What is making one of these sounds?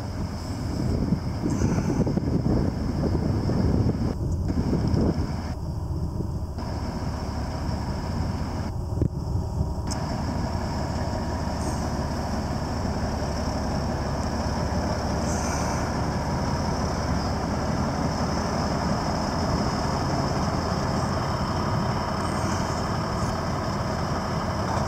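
A diesel truck engine idles with a deep, steady rumble.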